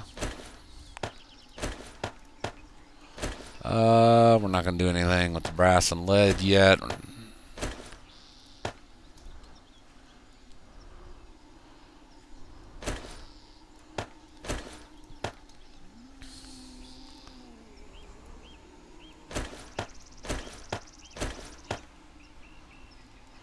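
Short soft clicks sound now and then as items are moved about.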